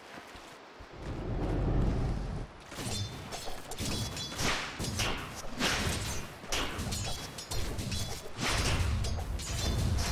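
Video game battle effects clash and crackle in quick bursts.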